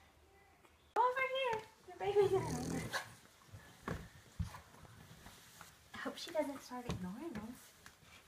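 Newborn puppies whimper and squeal close by.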